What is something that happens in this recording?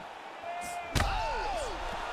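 A heavy punch lands with a sharp thud.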